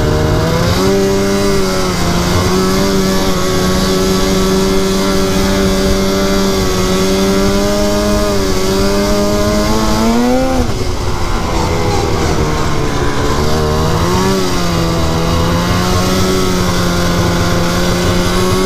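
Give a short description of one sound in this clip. Skis and tracks hiss over packed snow.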